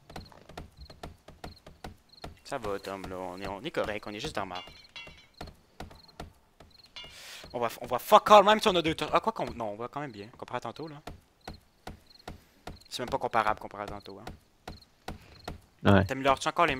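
A hammer knocks on wood.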